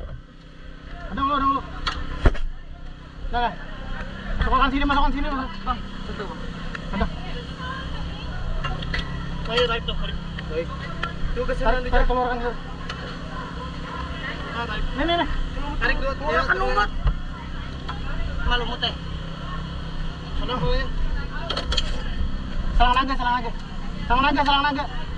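Several men talk with animation close by.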